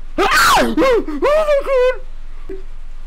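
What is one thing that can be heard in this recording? A young man shouts and laughs excitedly into a microphone.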